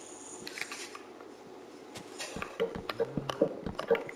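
Wooden blocks knock as they are placed.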